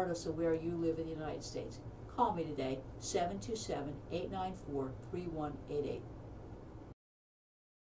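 A middle-aged woman speaks calmly and clearly into a close microphone.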